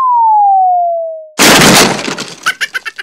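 A tall lamp topples over and crashes to the floor.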